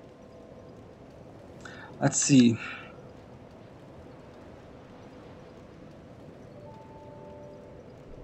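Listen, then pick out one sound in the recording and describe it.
Soft game menu chimes sound as options change.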